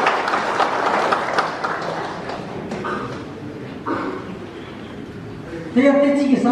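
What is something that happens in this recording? A crowd of people chatters and murmurs in a large echoing hall.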